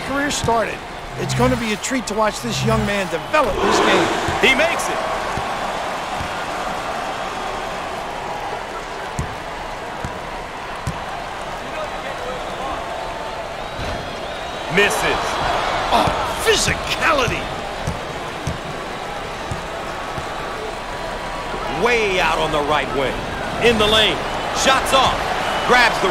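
A large crowd murmurs and cheers in a big echoing arena.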